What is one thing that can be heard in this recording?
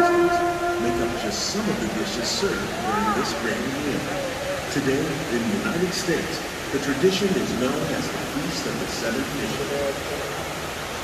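Several people chatter and exclaim nearby.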